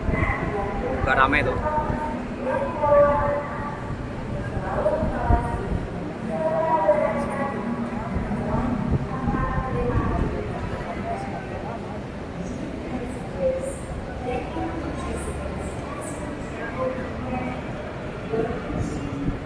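Suitcase wheels rumble over a hard floor.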